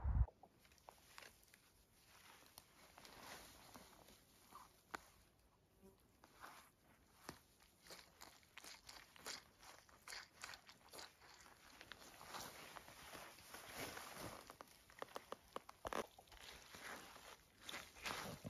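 Footsteps crunch and swish through dry grass.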